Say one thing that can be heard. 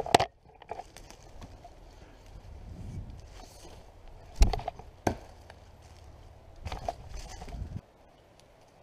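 Footsteps crunch and rustle through forest undergrowth close by.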